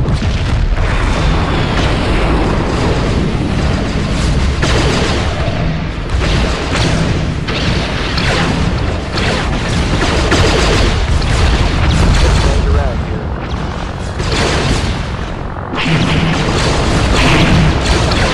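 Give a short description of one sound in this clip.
Starfighter laser cannons fire in rapid bursts.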